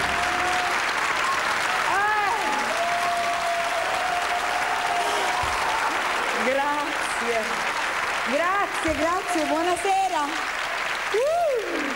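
A woman sings with energy into a microphone.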